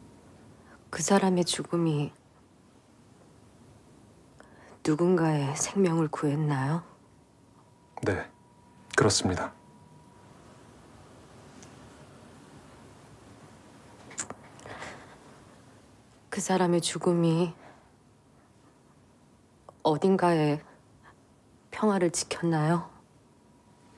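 A young woman speaks close by in short phrases.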